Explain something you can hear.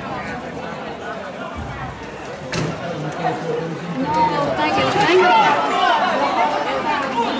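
A crowd of men and women chatter and shout outdoors.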